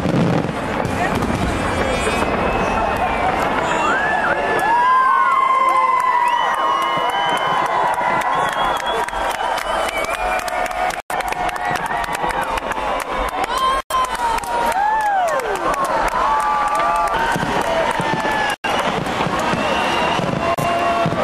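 Fireworks crackle and pop overhead without a break.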